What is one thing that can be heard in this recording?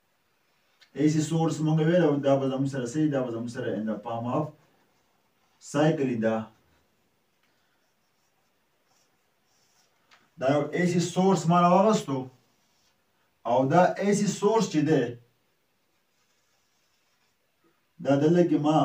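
A man speaks calmly and clearly, as if explaining a lesson.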